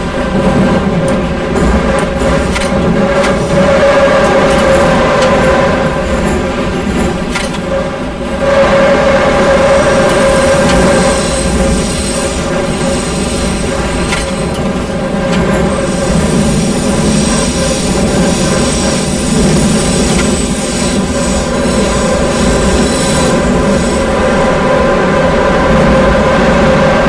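Train wheels clatter over rail joints.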